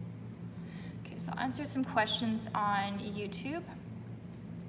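A young woman speaks briefly and with animation, close to the microphone.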